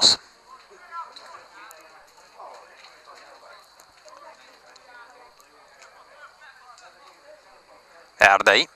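Men shout and call out faintly across an open outdoor field.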